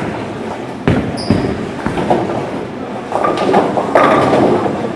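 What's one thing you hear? A bowling ball rumbles down the lane.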